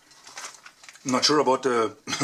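A plastic package crinkles.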